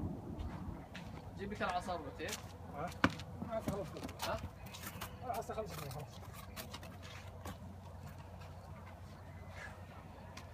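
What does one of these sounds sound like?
Horse hooves clop on hard ground.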